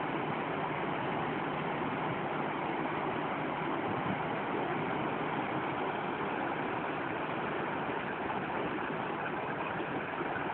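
Water rushes and churns loudly and steadily.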